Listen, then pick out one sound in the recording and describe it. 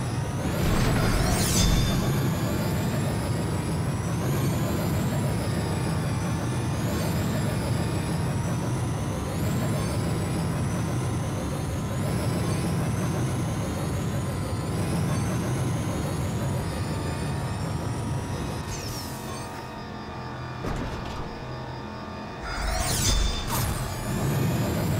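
A racing car engine roars at high speed, its pitch climbing again and again through the gears.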